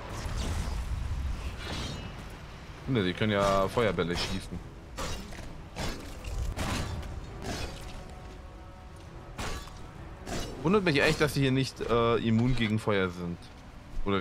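Swords clang and strike in a fight.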